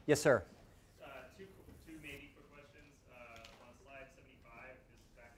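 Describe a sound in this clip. A man lectures calmly through a microphone in a large room.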